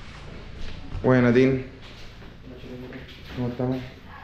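A young man speaks close by with animation.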